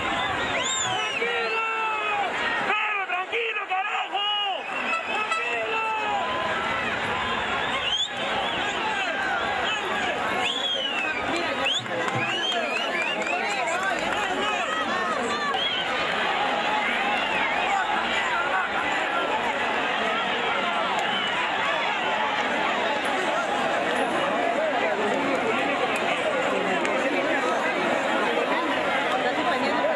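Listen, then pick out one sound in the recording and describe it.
A large crowd shouts and roars in a stadium.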